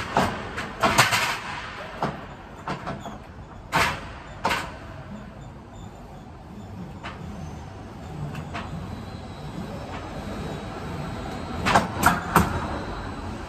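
Metal clanks and knocks sharply close by.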